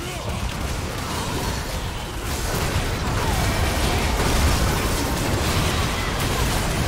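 Magic spells and weapon hits crackle and clash in a fast game battle.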